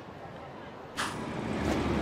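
A menu clicks closed.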